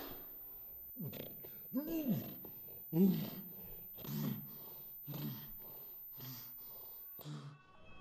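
A young woman moans softly close by.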